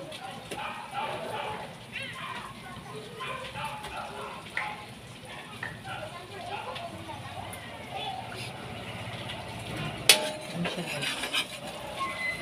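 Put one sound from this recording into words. Batter sizzles gently in hot oil.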